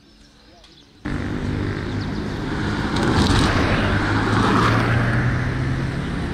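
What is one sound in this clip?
Traffic roars past close by on a road.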